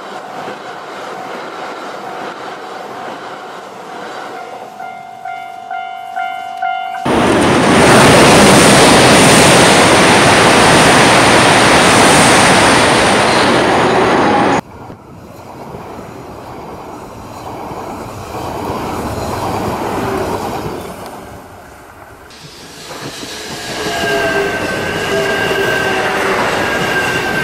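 A toy train rumbles and rattles along plastic tracks.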